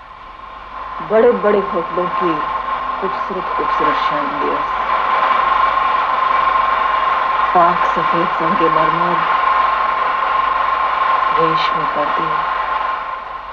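A woman speaks softly and tearfully, close by.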